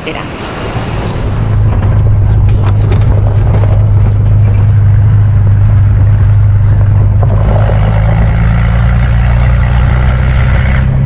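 A vehicle engine rumbles steadily while driving on a dirt track.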